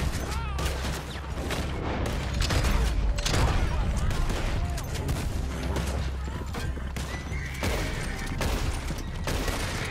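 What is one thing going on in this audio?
Horses gallop over the ground.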